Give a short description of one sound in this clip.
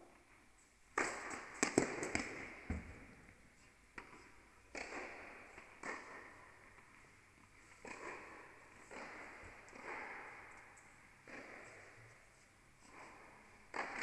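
Tennis balls are struck with rackets, echoing in a large hall.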